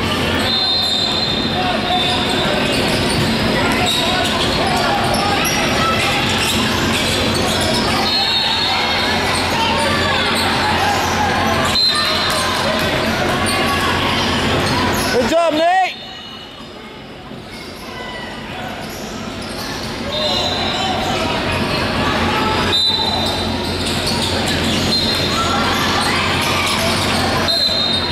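A large crowd chatters and calls out in a big echoing hall.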